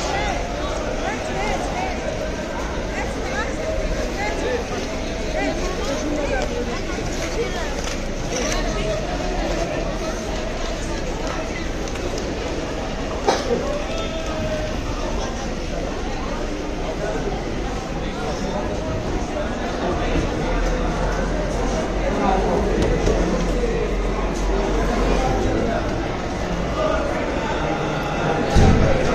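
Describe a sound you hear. A crowd of men and women murmurs and talks all around.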